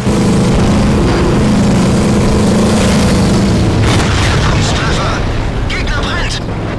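A tank engine rumbles and hums steadily.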